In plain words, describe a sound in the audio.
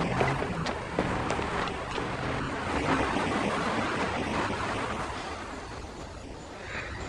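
A car drives past slowly.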